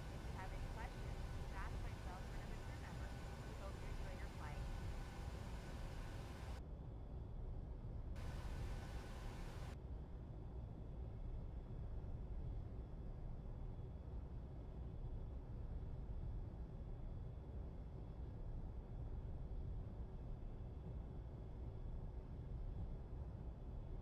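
Jet engines hum steadily in a low rumble.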